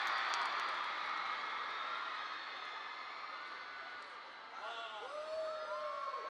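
A large crowd screams and cheers loudly.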